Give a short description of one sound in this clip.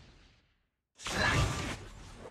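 Game fighters clash with sharp hits.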